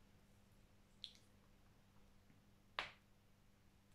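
Plastic clicks and taps softly.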